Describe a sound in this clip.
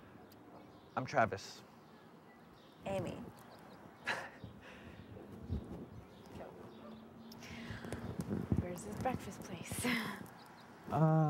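A young woman talks with animation, close by.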